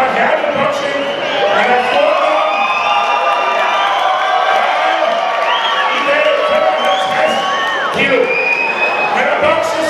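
A man announces loudly through a microphone over loudspeakers in a large echoing hall.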